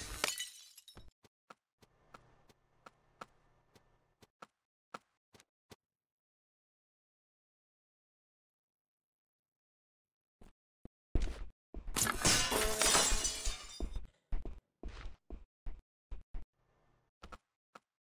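Soft footsteps tap on a hard floor.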